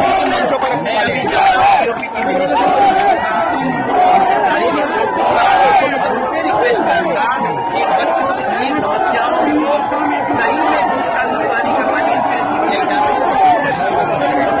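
A middle-aged man speaks forcefully into a close microphone.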